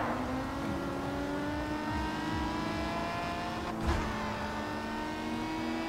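A racing car engine roars at high revs, its pitch climbing steadily as it speeds up.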